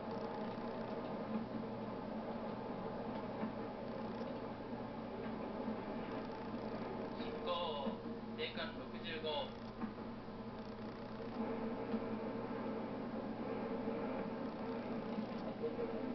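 An electric commuter train runs along the track, heard through a small loudspeaker.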